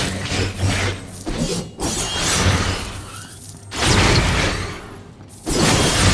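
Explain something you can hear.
Gold coins jingle as they are picked up.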